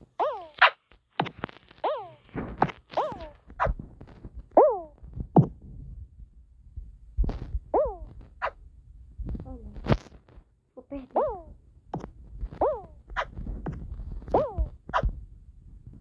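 Short cartoon boing sounds chirp again and again.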